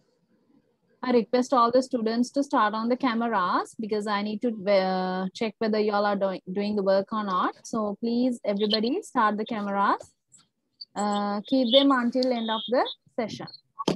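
A woman speaks clearly and slowly through an online call, as if teaching.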